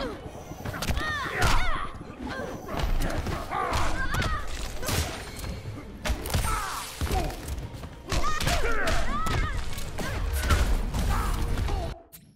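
A woman shrieks and grunts as she fights.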